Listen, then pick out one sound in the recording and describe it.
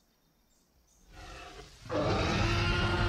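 A dinosaur roars loudly.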